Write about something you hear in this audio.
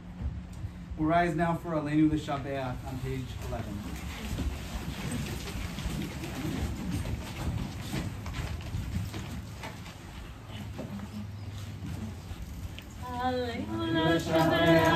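A woman sings along nearby.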